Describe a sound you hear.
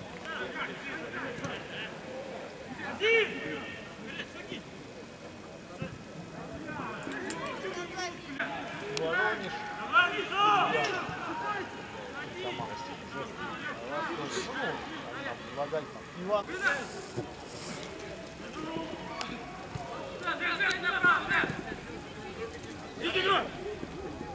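Players shout to each other across an outdoor pitch.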